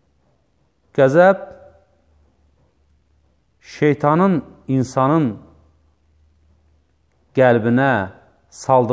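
A man speaks calmly in short phrases into a close microphone, with pauses between them.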